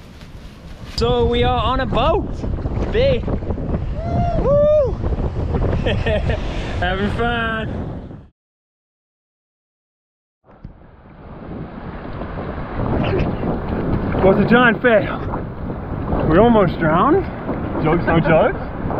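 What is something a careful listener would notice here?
Wind blows against a microphone out on the water.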